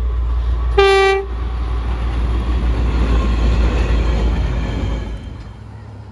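A diesel train rumbles past on the rails.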